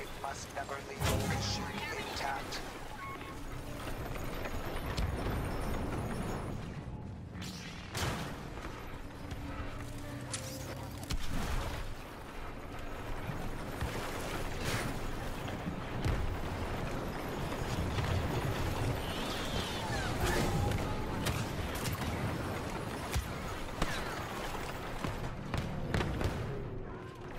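Blaster shots zap and crackle nearby.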